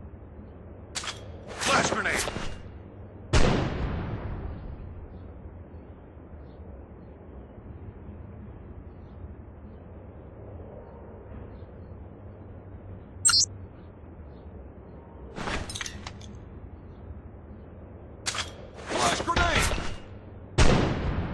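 A grenade pin clicks as it is pulled and released.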